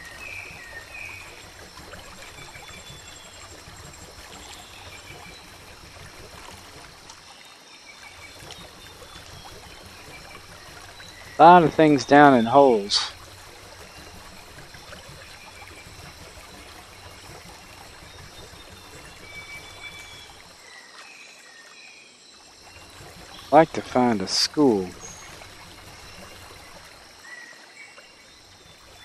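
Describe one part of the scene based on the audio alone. A paddle dips and splashes softly in calm water.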